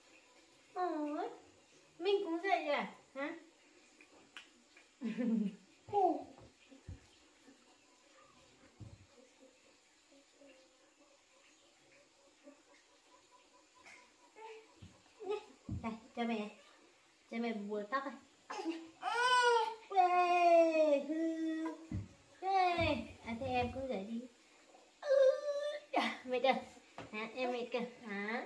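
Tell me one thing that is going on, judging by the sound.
A young woman speaks softly and playfully to a baby close by.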